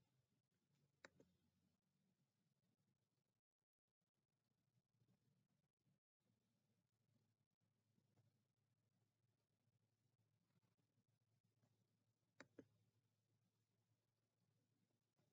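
A young man speaks quietly and slowly, close to a webcam microphone.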